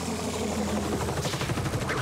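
A helicopter's rotor whirs overhead.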